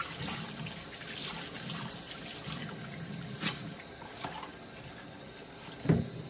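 A plastic plate knocks against a sink.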